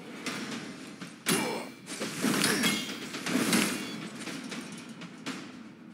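Weapons strike with sharp hits.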